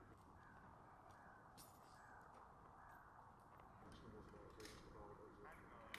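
Men talk outdoors.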